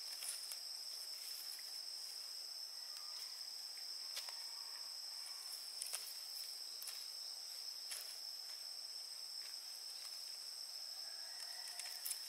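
A knife taps and scrapes on bamboo.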